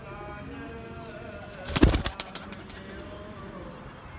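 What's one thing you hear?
Pigeons flap their wings.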